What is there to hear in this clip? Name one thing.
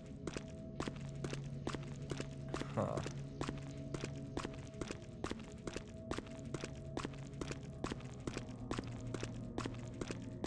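Footsteps echo steadily along a hard tunnel floor.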